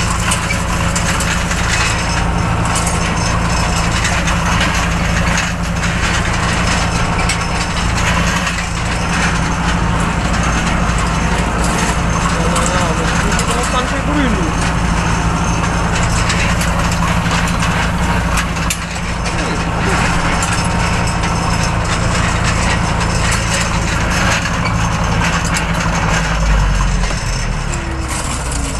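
A mower rattles and clatters through tall grass.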